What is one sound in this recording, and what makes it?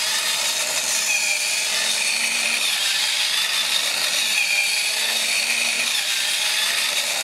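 A toy robot's plastic feet click on a table.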